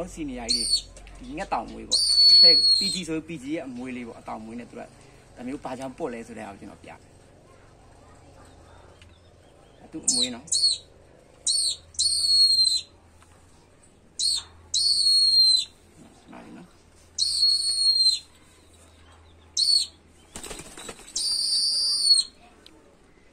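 A hawk screeches in repeated high, shrill cries.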